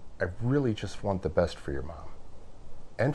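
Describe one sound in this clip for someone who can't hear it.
A man speaks up close.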